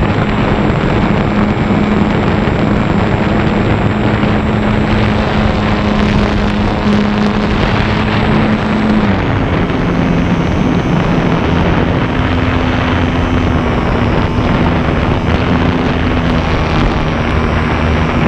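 The electric motor and propeller of a radio-controlled model plane whine from on board, changing pitch with the throttle.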